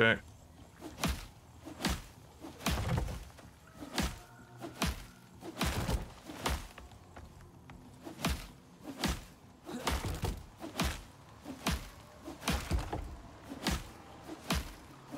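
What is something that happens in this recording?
A hammer knocks on wood in steady, repeated blows.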